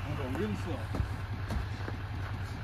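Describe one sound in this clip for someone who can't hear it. A truck door opens with a click.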